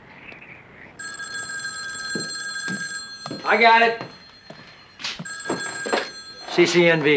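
A telephone rings indoors.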